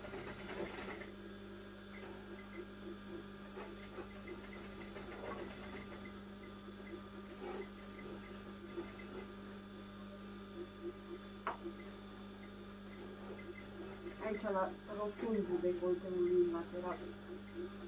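A sewing machine whirs steadily as it stitches, close by.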